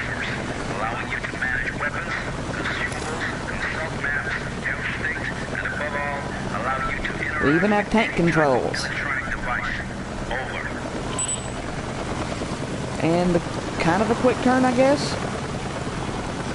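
Wind blows steadily through a snowstorm.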